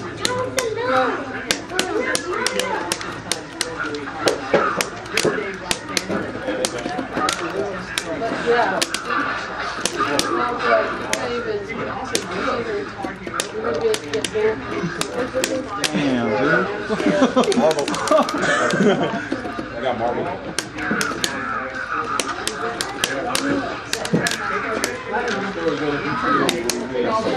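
Punches and kicks land with sharp smacks from a loudspeaker.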